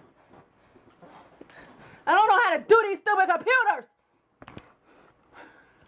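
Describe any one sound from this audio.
A woman speaks with animation close to the microphone, in loud, drawn-out bursts.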